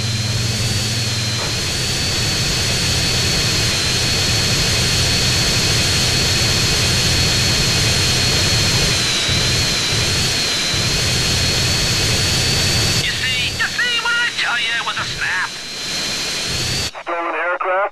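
A jet engine roars loudly and steadily.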